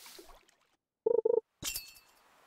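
A short game chime signals a fish biting.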